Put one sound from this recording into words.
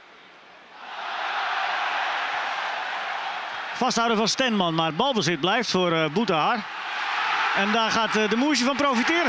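A large crowd roars loudly in a stadium.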